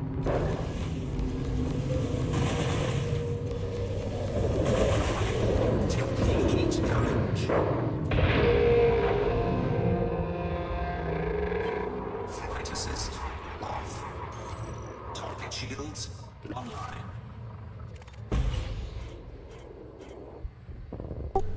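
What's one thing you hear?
A spaceship's engines rumble low and steadily.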